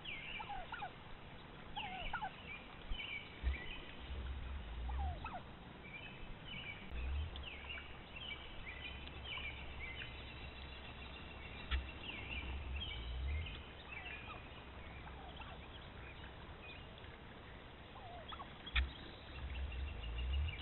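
A wild turkey puffs and drums nearby.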